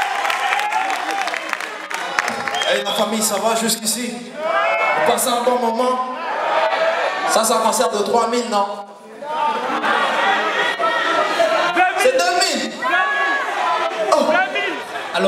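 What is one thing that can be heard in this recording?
A man sings into a microphone over loudspeakers in a large hall.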